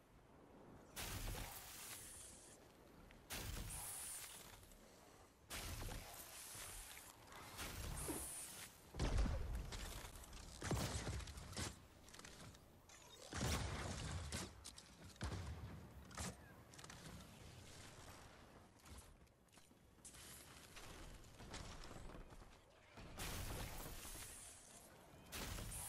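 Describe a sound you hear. Building pieces snap into place with short whooshing bursts.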